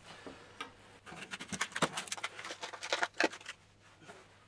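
Plastic clicks and rattles as hands handle a small case.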